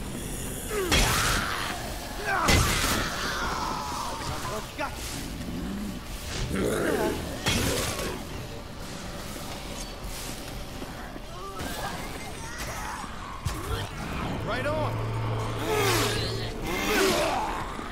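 Heavy blows thud and crunch as a weapon strikes attackers.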